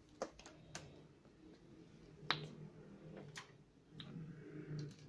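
Metal test probes tap and click against each other.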